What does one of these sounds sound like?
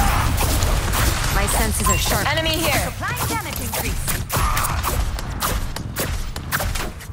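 Video game gunfire cracks in quick bursts.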